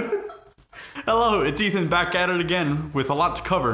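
A young man speaks calmly to the microphone.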